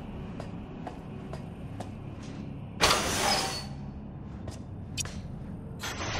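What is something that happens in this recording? Footsteps clank on a metal floor at an even pace.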